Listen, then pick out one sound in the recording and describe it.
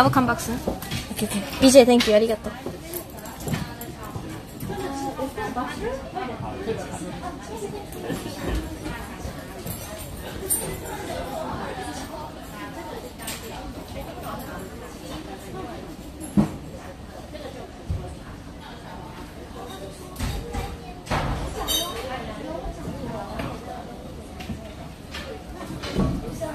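People chat in the background.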